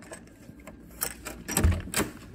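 A door's lever handle clicks as it is pressed down.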